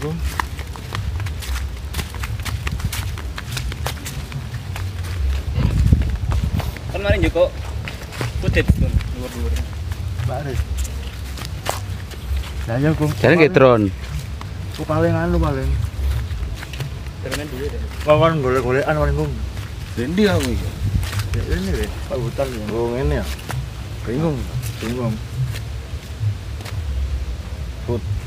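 Footsteps crunch on a leafy dirt path.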